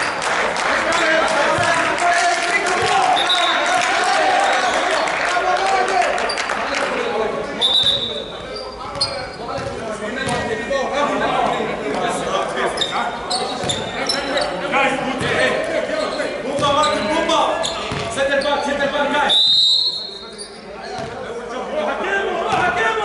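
Several men talk and call out in a large echoing hall.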